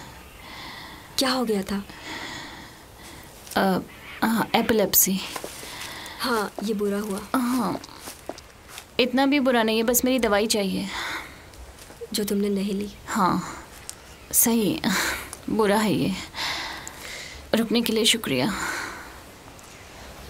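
A second young woman answers in a strained, pained voice.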